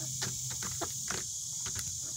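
Chickens peck sharply at a plastic feeder.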